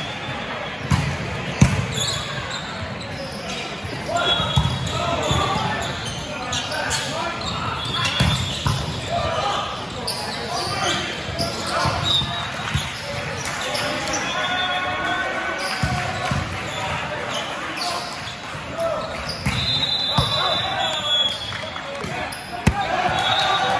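A volleyball is struck with sharp slaps, echoing in a large hall.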